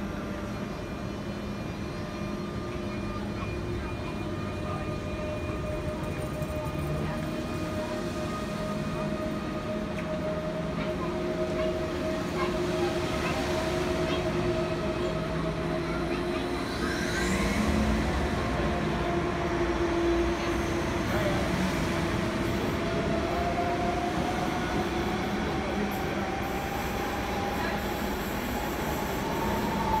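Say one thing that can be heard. Steel wheels squeal on the rails.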